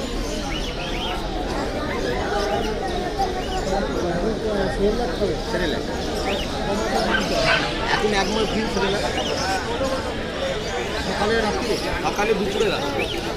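A crowd of men and women talk over one another nearby.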